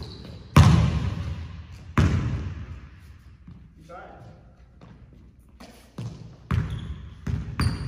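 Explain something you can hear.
A basketball bounces hard on a wooden floor, echoing through a large hall.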